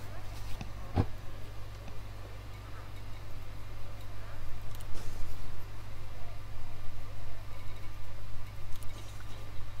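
Short electronic blips sound as menu options change.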